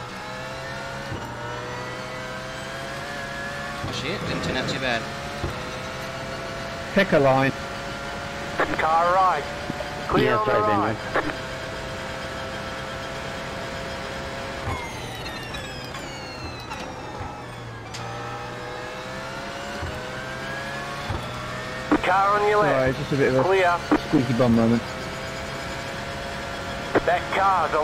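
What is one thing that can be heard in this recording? A racing car engine roars steadily, shifting up through the gears and dropping in pitch as it brakes and shifts down.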